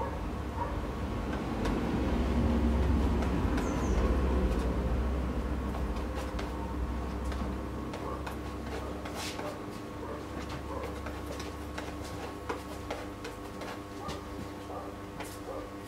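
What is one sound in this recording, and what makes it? A paintbrush taps and brushes softly against a canvas.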